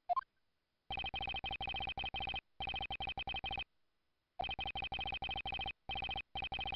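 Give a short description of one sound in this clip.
Rapid electronic blips tick in quick bursts as text types out.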